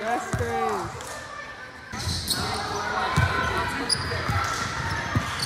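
Young girls shout and call out in a large echoing gym.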